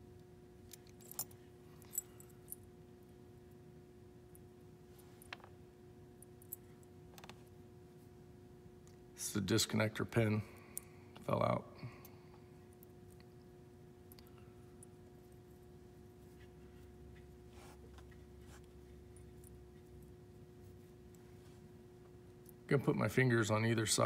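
Small plastic parts click and tap together in someone's hands.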